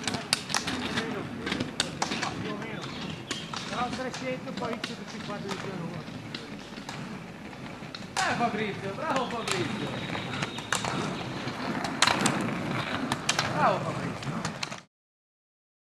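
Ski poles click sharply on asphalt.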